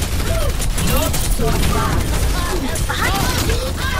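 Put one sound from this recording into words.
Rapid gunfire and energy blasts crackle in a video game.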